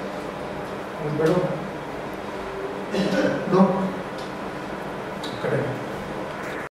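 A man speaks in short bursts nearby.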